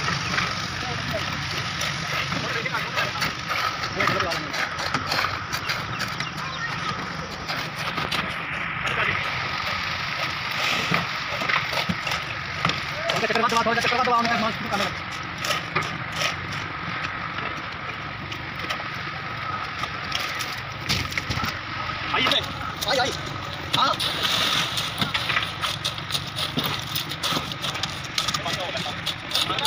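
A shovel scrapes through wet concrete.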